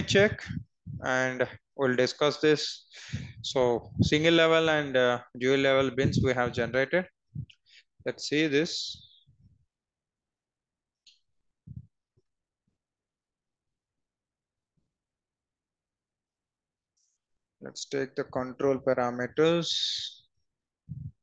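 A young man speaks calmly and closely into a headset microphone, in short bursts with pauses.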